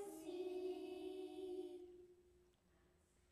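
A group of children sing together in an echoing hall.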